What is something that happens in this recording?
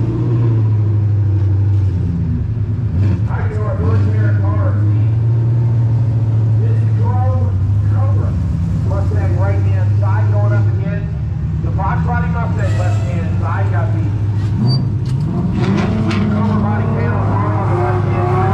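Race car engines rumble loudly and steadily nearby.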